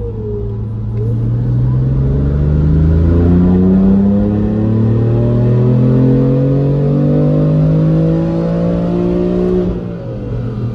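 A car engine revs up in a long steady climb, then drops back.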